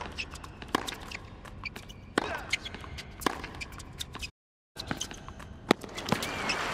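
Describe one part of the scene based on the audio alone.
Rackets strike a tennis ball back and forth with sharp pops.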